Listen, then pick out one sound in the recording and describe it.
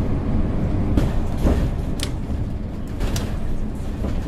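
Clicks and knocks sound from inside the bus.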